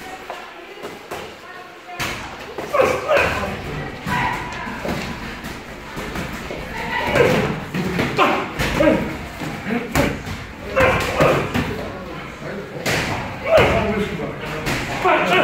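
Boxing gloves thud against each other.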